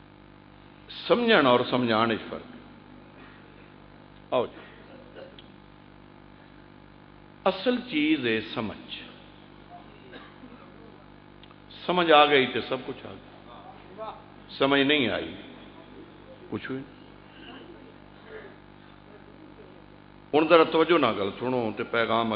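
A man speaks with passion through a microphone and loudspeakers, in loud bursts with pauses between them.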